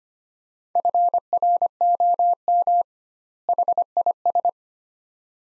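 A Morse code key beeps out short and long steady tones.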